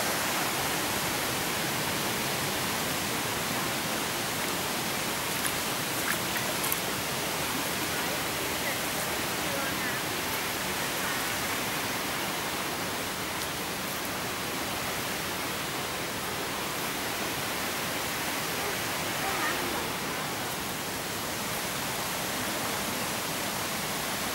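A shallow stream trickles over rocks.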